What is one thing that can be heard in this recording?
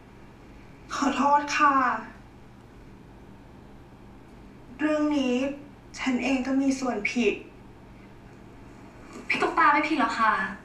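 A young woman answers softly and apologetically, heard through a played-back recording.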